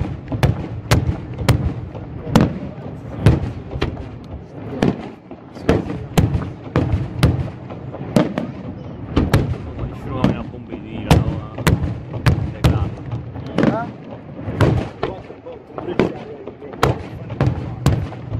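Fireworks crackle and fizz after the bursts.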